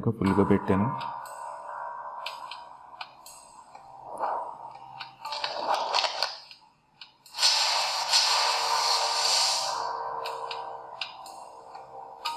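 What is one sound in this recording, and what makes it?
Game music and sound effects play from a phone's small speaker.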